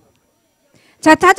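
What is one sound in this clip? A woman speaks loudly into a microphone.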